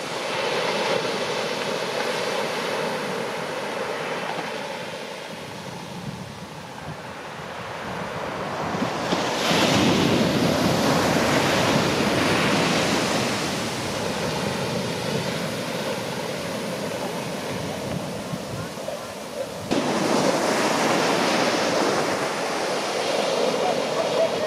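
Waves crash and roll onto a beach.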